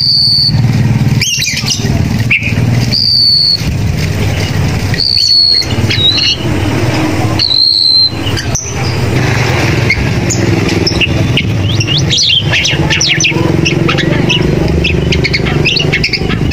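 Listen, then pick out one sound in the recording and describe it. A songbird sings loud clear whistles and quick trills close by.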